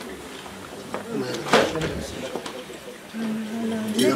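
Bottles clink as a man sets down a box of drinks.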